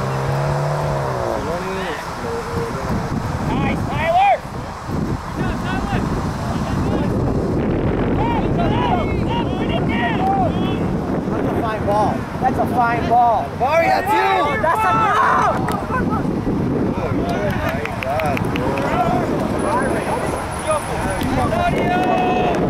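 Young men shout and call to each other outdoors on an open field.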